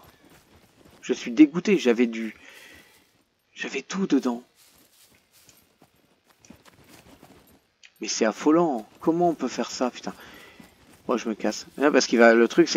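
Footsteps crunch through grass and leaves.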